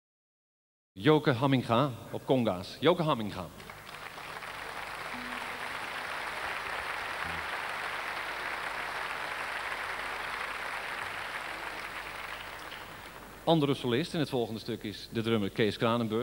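A man speaks into a microphone, heard through loudspeakers in a large hall.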